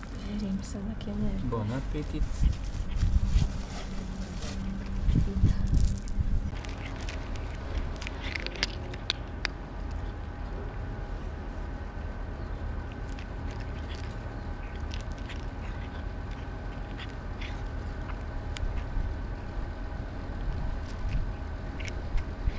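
A cat crunches dry food close by.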